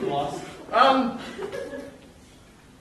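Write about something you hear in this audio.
A man speaks loudly with animation in a large hall.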